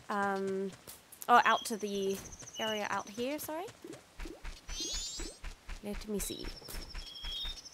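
A young woman talks into a microphone close up.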